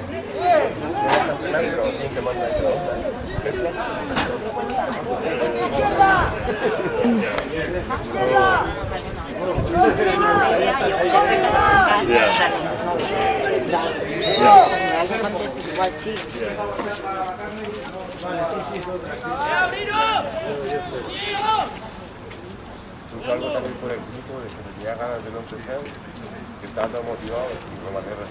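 Men shout and call out to each other across an open field outdoors.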